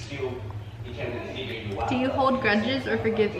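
A second young woman talks close by.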